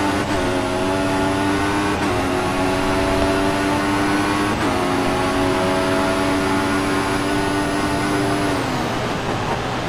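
A racing car engine screams at high pitch, climbing through quick gear shifts.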